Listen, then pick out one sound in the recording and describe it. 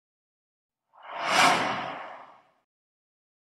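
A soft whoosh sweeps past and fades.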